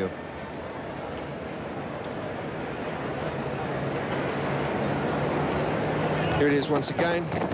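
A stadium crowd cheers and murmurs in the open air.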